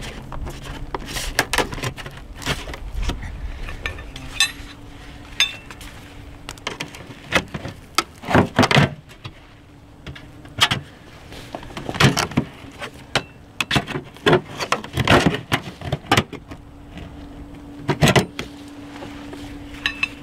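A metal pry bar scrapes and knocks against a soffit panel.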